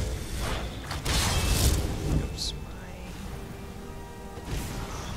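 Lightning crackles and buzzes.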